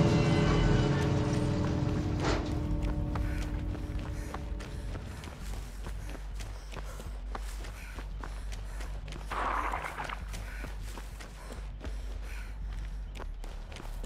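Footsteps run through rustling grass.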